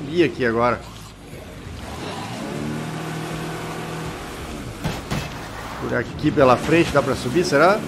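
A car engine hums steadily as a vehicle drives through water.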